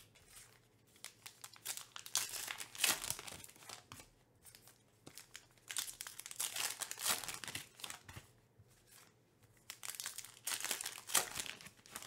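A plastic card wrapper crinkles loudly as it is torn open.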